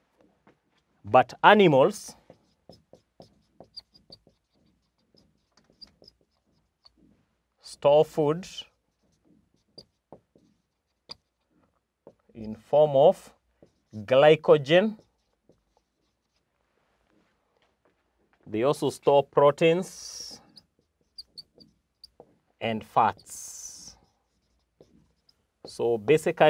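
A man speaks calmly in short phrases with pauses, close to a microphone.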